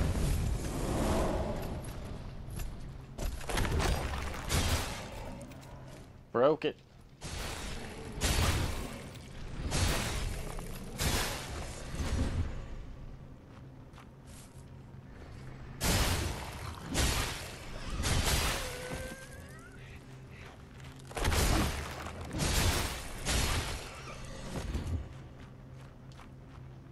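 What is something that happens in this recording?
A heavy weapon swings and strikes with loud crashing hits.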